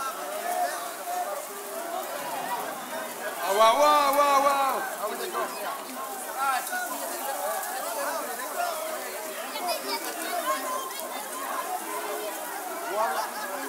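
A crowd of people chatters and shouts nearby.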